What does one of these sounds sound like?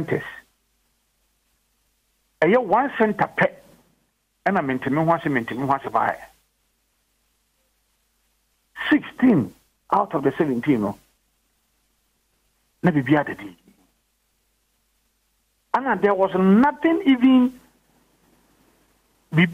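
A man speaks calmly over a phone line, pausing between phrases.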